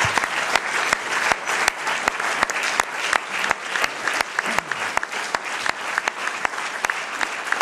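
A man claps his hands close by.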